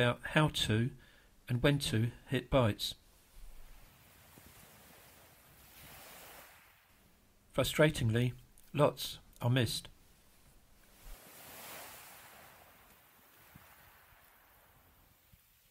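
Small waves wash onto a pebble shore.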